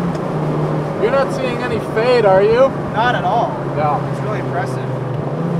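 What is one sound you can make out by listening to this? A man speaks briefly through a helmet microphone.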